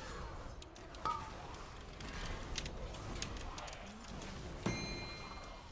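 Magic impacts clang and chime sharply.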